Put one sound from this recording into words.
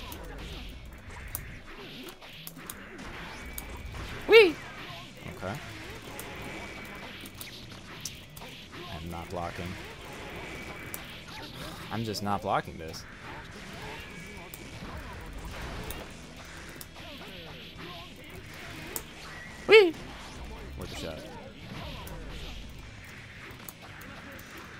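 Fighting game hits and slashes crack in quick bursts.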